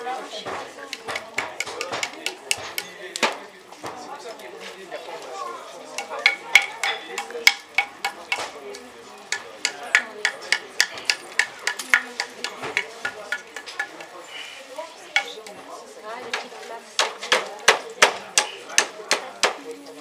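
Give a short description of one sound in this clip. A hammer taps rapidly on metal.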